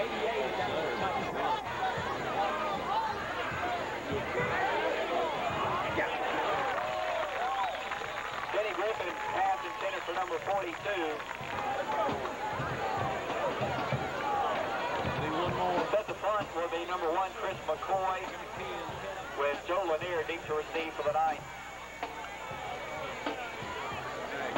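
A crowd of spectators cheers and shouts throughout.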